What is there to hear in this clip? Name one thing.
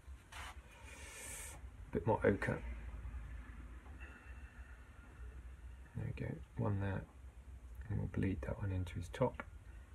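A brush brushes softly across paper.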